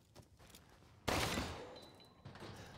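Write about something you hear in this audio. A pistol fires a single loud shot that echoes briefly.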